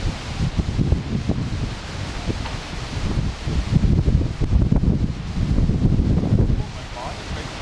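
Wind gusts outdoors and buffets the microphone.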